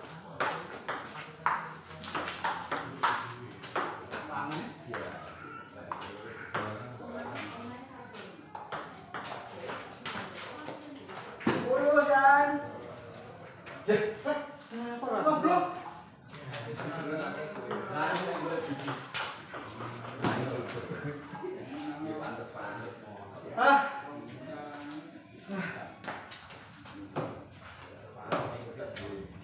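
A table tennis ball clicks back and forth between paddles and the table in quick rallies.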